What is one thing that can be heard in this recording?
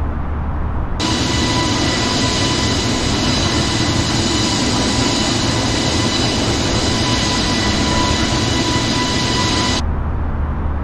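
Jet engines roar loudly with a high, steady whine.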